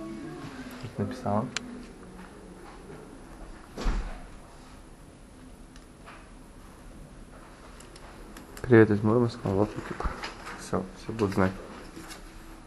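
A young woman speaks casually close by.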